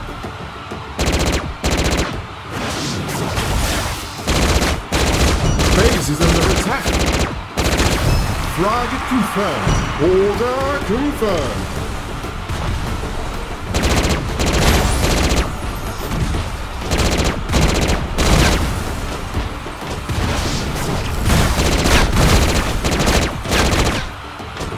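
Gunfire from a game crackles in rapid bursts.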